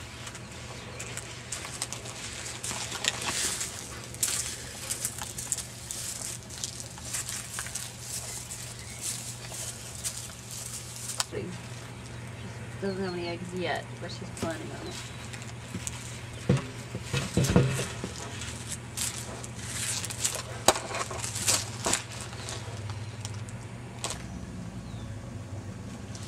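Dry leaves rustle and crackle as a turtle crawls over them.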